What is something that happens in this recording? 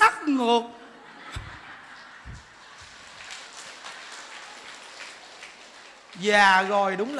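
A crowd laughs.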